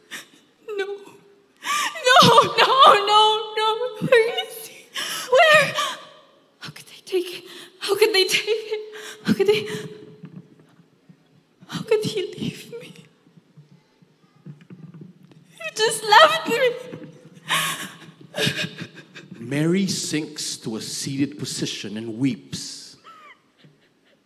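A young woman speaks emotionally into a microphone, her voice rising and breaking.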